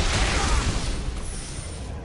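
A sword slashes and strikes with a heavy impact.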